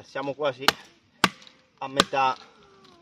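A blade chops into a wooden stick with sharp knocks.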